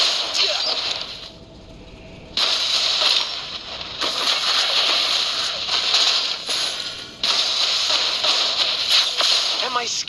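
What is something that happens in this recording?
Fiery spells whoosh and blast in a game.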